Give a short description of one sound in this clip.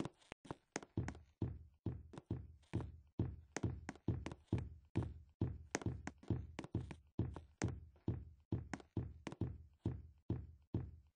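Heavy, low thuds stomp in a steady rhythm.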